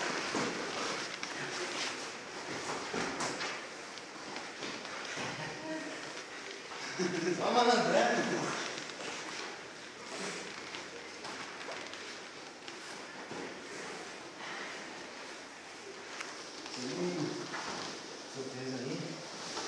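Heavy jiu-jitsu gi fabric rustles as two men grapple on foam mats.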